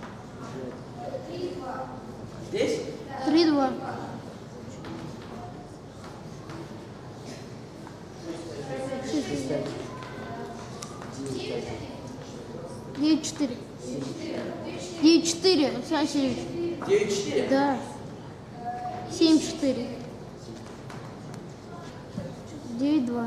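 A middle-aged man lectures calmly in a room with a slight echo.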